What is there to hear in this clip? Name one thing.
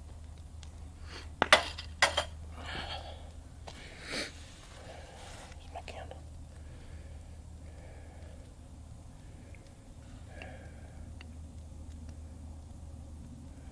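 A small fire crackles and pops close by.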